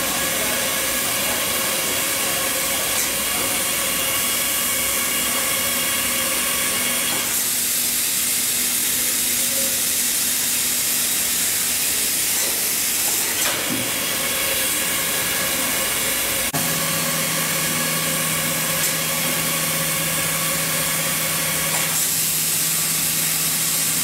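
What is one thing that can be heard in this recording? A welding machine hums steadily as its rollers run.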